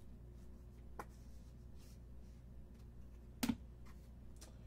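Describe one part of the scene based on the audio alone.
Trading cards are set down on a table with a light tap.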